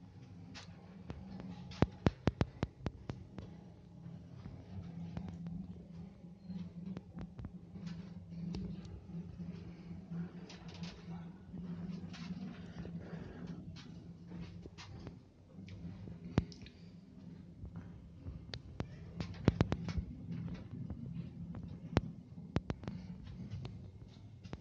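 An elevator car hums steadily as it travels.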